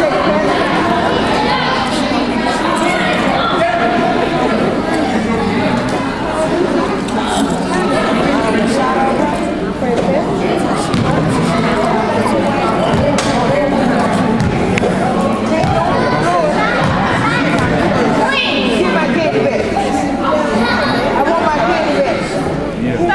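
A crowd of children and adults chatters and calls out in a large echoing gym.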